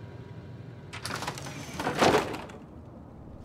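A creaky wooden door opens with a rush of noise.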